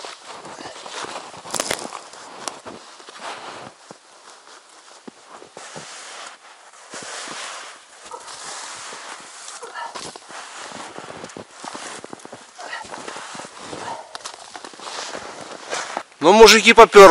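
A man rustles and snaps fir branches against a tree.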